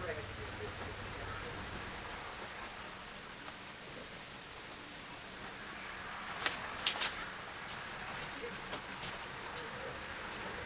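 Pastel chalk scrapes and rubs against paper.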